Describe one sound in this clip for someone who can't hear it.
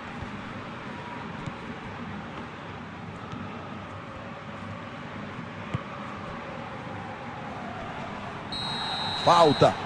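A large crowd murmurs and roars steadily in a big open stadium.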